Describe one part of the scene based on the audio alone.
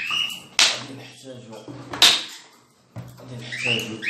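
A plastic jar knocks down onto a hard surface.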